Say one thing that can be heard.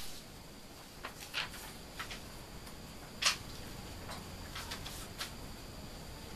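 Paper rustles and crinkles in a hand.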